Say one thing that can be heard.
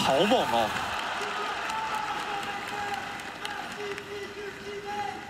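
A large crowd cheers and applauds in a big echoing arena.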